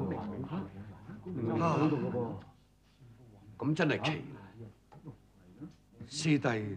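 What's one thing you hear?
Men argue loudly and with agitation nearby.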